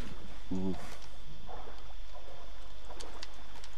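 Water splashes as a swimmer moves through it.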